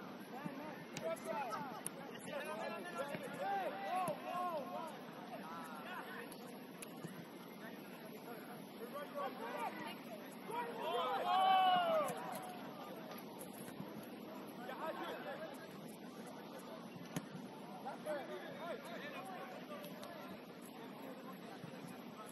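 Young players shout and call to each other across an open field, at a distance.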